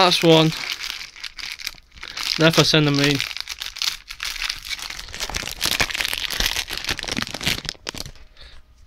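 A foil card pack wrapper crinkles as it is torn open.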